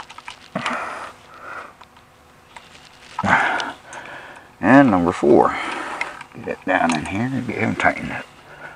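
A screwdriver scrapes and clicks against a plastic outlet.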